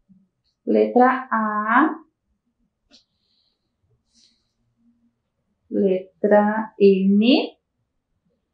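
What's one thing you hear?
A woman speaks clearly into a microphone, drawing out her words slowly.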